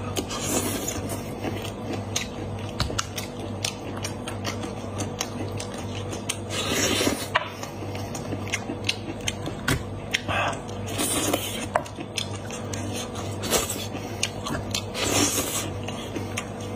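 A man sucks air through his lips, close up.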